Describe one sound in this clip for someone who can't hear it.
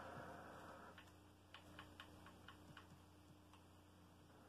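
Short electronic menu clicks sound from a television speaker.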